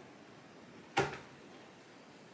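Something knocks once against a wall.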